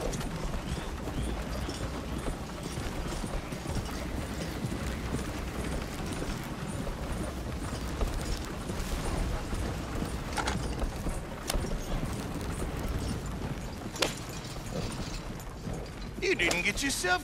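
A wooden wagon rumbles and creaks along a dirt track.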